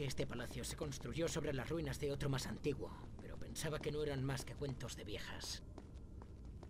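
Footsteps run quickly across a stone floor in an echoing space.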